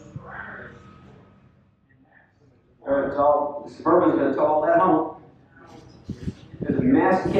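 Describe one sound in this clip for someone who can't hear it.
An older man speaks calmly into a microphone over a loudspeaker in a large echoing space.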